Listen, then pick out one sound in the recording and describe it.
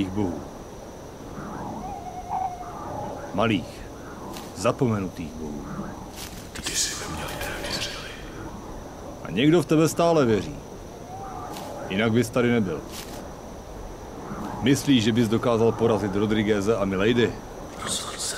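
A man speaks slowly in a low, grave voice, close by.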